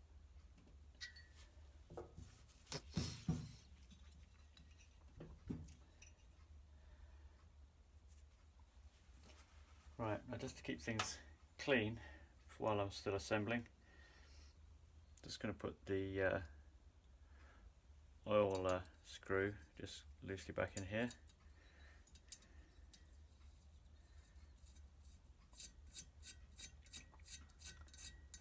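Small metal engine parts clink and tap as they are handled.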